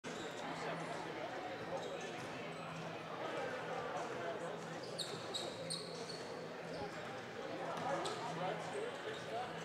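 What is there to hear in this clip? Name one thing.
Basketballs bounce on a wooden floor in a large echoing gym.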